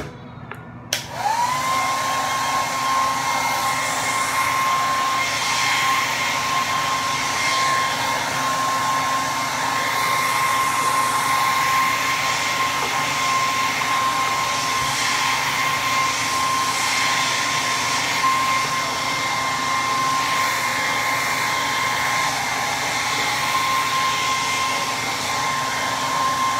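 A hair dryer switches on with a rising whine and then blows with a steady loud whirring hum.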